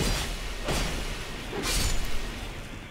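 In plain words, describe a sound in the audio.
A sword swishes through the air in a series of strikes.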